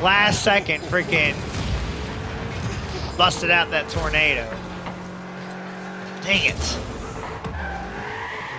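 A racing car engine hums and whooshes as it speeds along.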